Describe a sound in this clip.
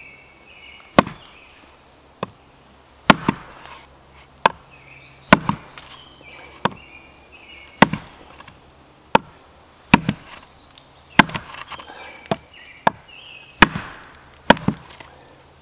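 Wooden mallet blows knock sharply on a log.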